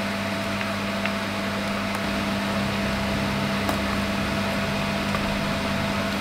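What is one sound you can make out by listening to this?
A plastic box clicks and taps softly.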